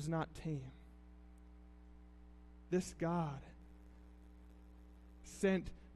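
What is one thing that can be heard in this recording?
A man speaks calmly in short phrases through a microphone, with long pauses.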